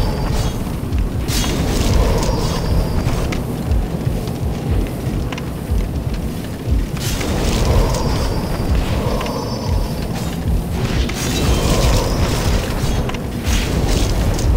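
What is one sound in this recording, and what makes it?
A sword swings and strikes with sharp metallic hits.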